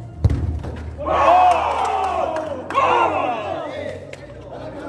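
Men shout and cheer loudly in an echoing indoor hall.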